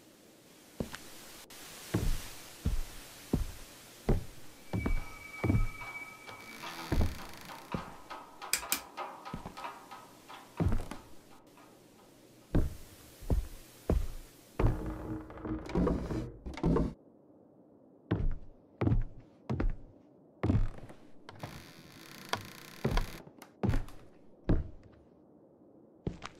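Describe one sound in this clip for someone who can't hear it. Footsteps thud slowly on a creaking wooden floor.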